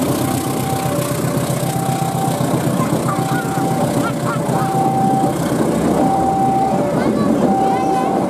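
A railway crossing bell rings steadily in a repeating two-tone pattern.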